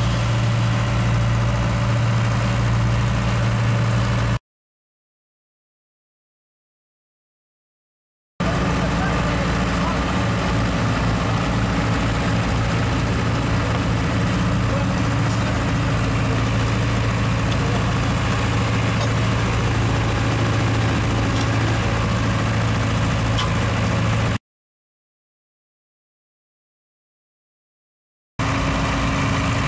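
A diesel engine hums steadily nearby.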